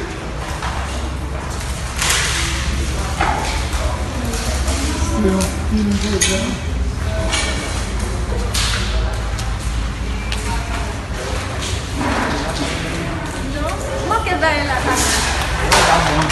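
A crowd of people talks and murmurs nearby, echoing in a large hall.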